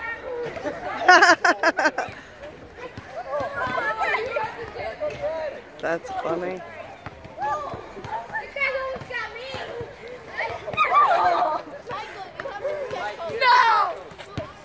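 Children and adults laugh and shout with excitement.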